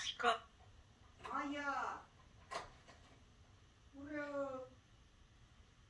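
A parrot squawks and whistles close by.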